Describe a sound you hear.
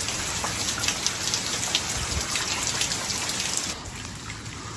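Water streams and drips heavily from a roof edge close by.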